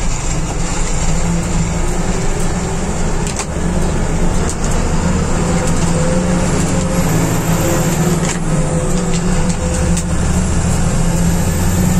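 A bus engine drones steadily from inside the cabin.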